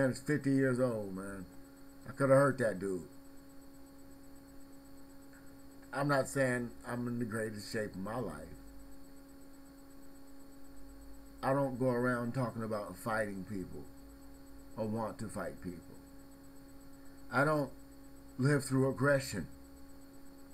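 A middle-aged man speaks close to a webcam microphone in short bursts with pauses.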